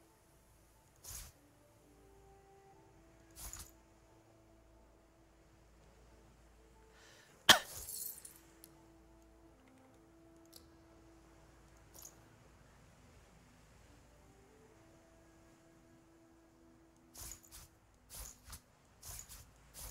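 Short game interface sounds click and clatter as items are moved.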